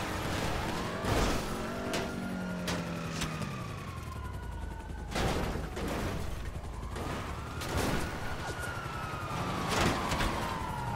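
A car crashes and thuds heavily on the ground.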